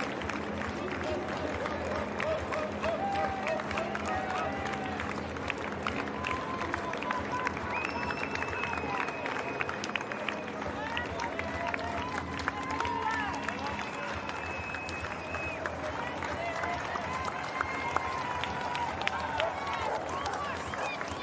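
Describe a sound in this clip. Spectators clap their hands along the street.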